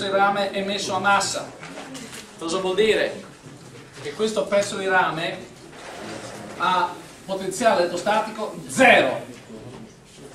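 An elderly man speaks calmly and clearly, close by.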